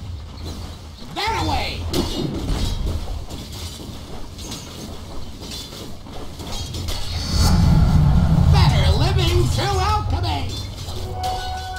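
Game sound effects of magic blasts and weapon hits ring out in a fight.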